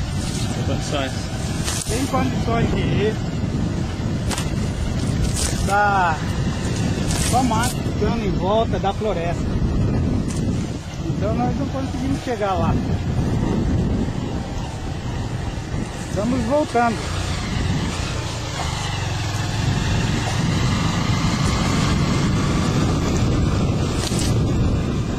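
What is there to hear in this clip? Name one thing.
Tall dry grass swishes and brushes against a moving motorbike.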